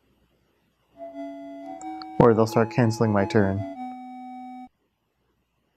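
A short electronic game tune plays in steady beeping notes.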